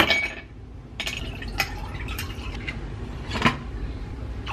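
Ice cubes clink into a glass.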